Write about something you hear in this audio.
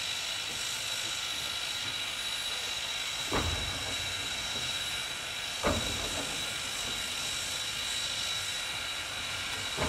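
A steam locomotive rolls slowly closer.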